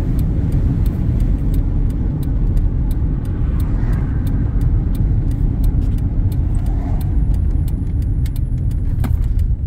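A car's tyres and engine rumble from inside the car on a paved highway.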